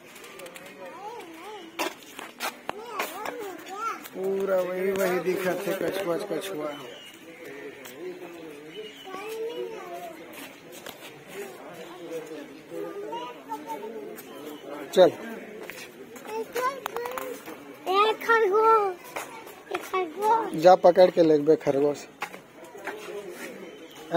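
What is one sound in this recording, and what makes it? Adults talk nearby outdoors.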